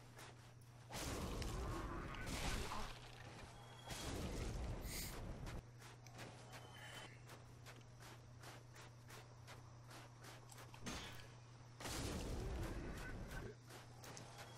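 A fireball whooshes and roars in bursts.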